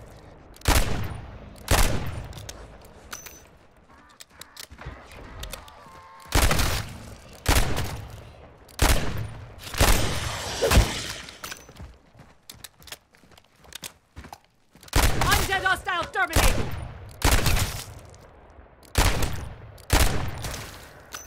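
Loud gunshots fire one by one and echo away.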